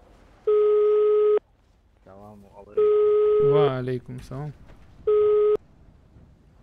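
A phone call tone beeps in short, loud bursts.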